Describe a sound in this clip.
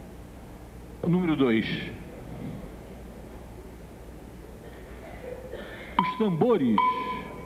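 An elderly man speaks through a microphone in short bursts, heard over a loudspeaker.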